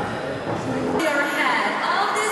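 A man and a woman talk close by.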